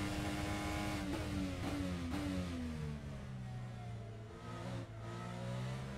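An open-wheel formula racing car engine winds down under braking.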